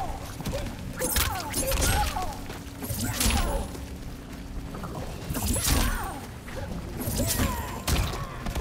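Magic energy bursts with sharp whooshing blasts.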